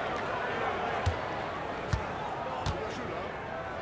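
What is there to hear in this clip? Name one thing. A basketball bounces on a hardwood court a few times.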